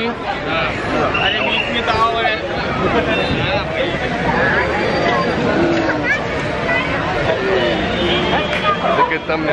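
Children laugh and cheer nearby.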